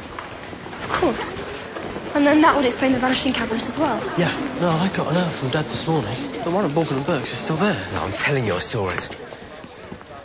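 A young person speaks calmly and close by.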